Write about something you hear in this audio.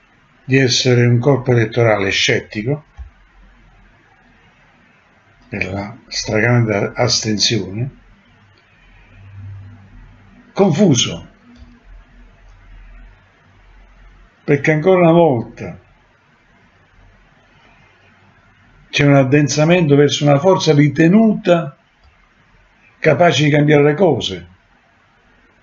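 An elderly man speaks calmly in short phrases, close to a microphone.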